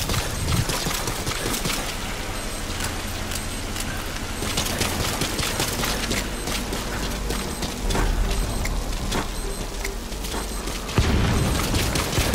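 Boots thud quickly on hard ground as a soldier runs.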